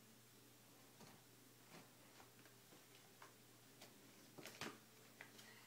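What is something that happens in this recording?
Books rustle and tap as a baby handles them.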